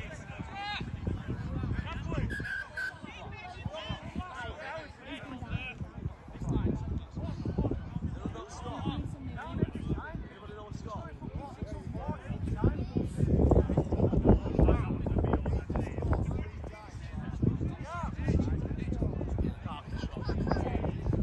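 Men shout and call to one another outdoors at a distance.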